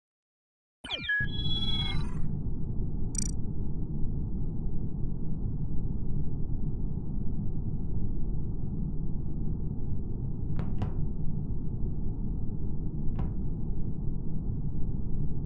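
A low, steady ambient hum drones on.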